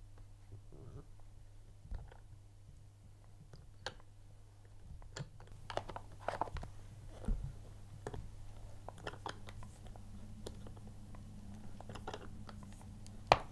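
A plastic crank clicks and rattles as it turns.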